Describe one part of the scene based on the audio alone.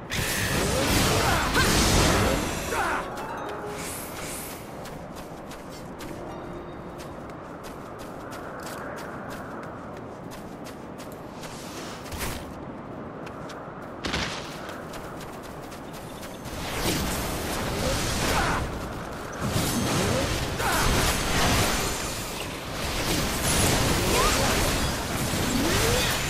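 Game combat effects and weapon strikes clash loudly.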